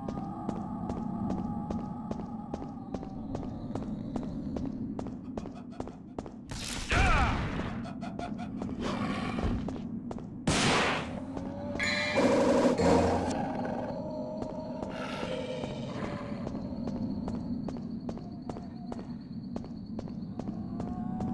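Footsteps tap steadily on stone in an echoing space.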